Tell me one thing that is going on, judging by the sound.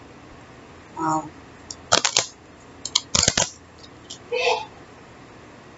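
A deck of cards is shuffled with soft, quick riffling clicks.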